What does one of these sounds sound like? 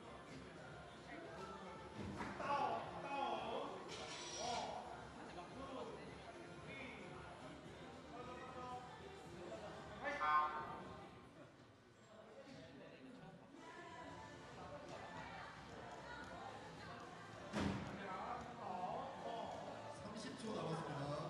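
Young men talk and call out in a large echoing hall.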